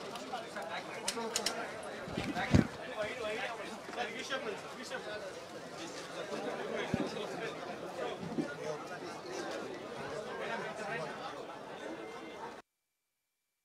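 A crowd of men and women chatter close by outdoors.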